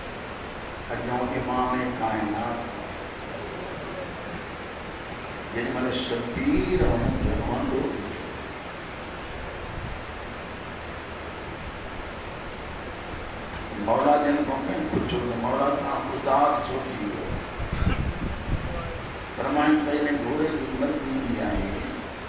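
A man recites in bursts of chanting through a microphone in an echoing hall.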